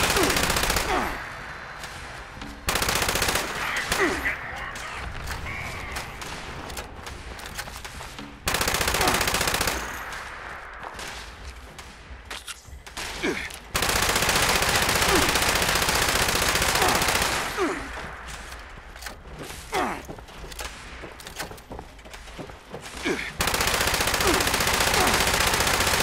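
A rapid-fire gun shoots in long, roaring bursts.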